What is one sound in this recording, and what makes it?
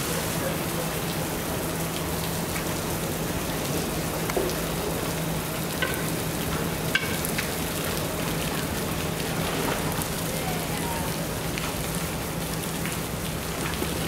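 Water sloshes and splashes as a polar bear swims.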